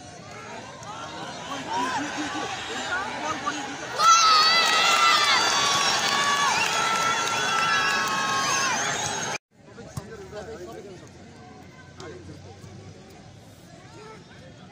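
A crowd of spectators cheers and shouts loudly from nearby.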